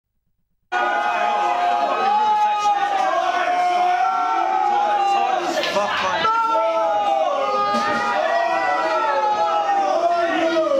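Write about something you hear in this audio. A live rock band plays loudly on electric guitars.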